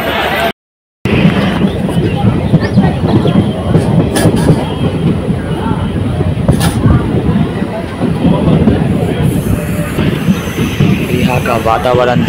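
A train rumbles and rattles along the tracks at speed.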